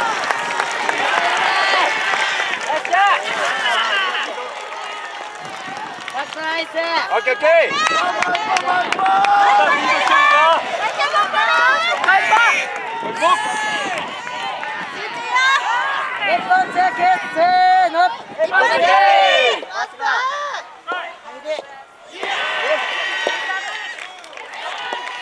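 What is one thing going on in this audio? A large outdoor crowd of spectators chatters and cheers loudly.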